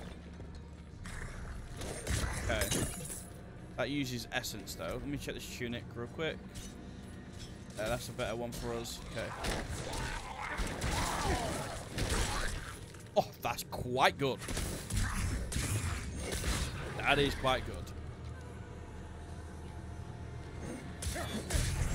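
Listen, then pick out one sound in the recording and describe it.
Game combat effects clash and thump.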